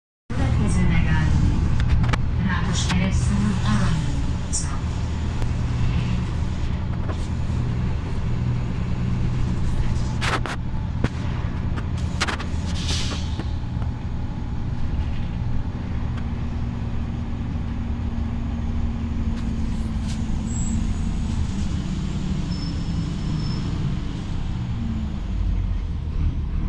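The bus interior rattles and clatters as it moves.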